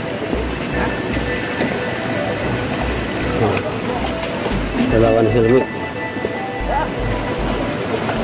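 Men talk and call out to each other outdoors.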